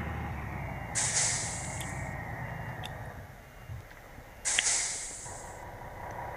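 Air brakes hiss sharply.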